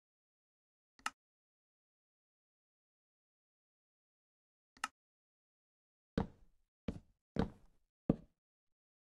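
Wooden blocks thud into place with short dull knocks.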